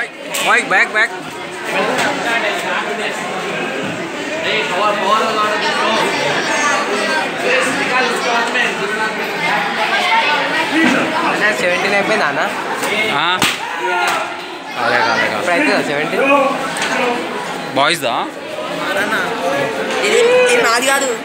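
A crowd of young people chatters and calls out in a large echoing hall.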